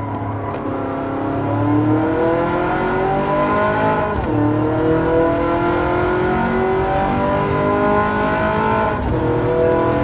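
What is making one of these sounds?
A racing car engine roars and climbs in pitch, dropping briefly at each gear change.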